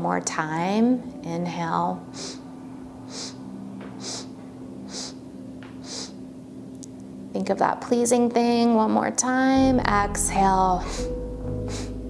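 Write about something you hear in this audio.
A woman speaks slowly and calmly, close to a microphone.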